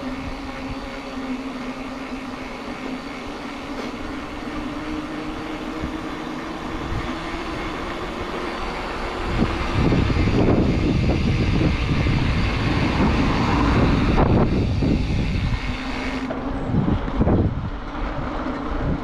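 Wind buffets the microphone outdoors, growing louder partway through.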